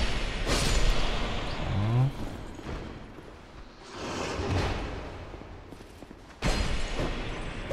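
A magic spell whooshes and crackles in a video game.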